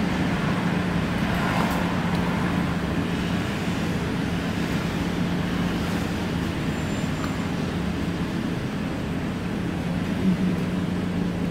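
An engine hums steadily from inside a vehicle idling in traffic.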